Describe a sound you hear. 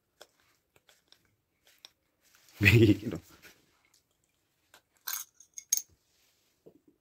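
A young man sips from a bottle close by.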